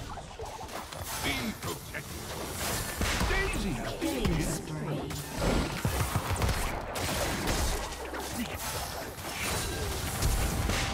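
Weapons clash and strike repeatedly in a video game fight.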